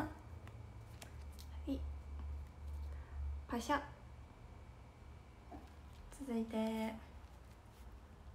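Paper pages rustle and flap.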